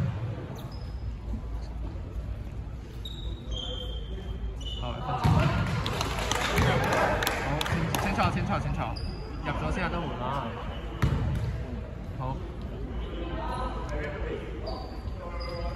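Basketball shoes squeak on a hardwood court.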